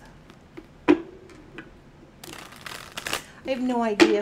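Cards shuffle and riffle in hands.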